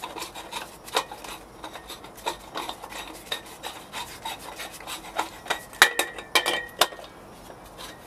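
Metal clicks and clatters as a gas canister is handled.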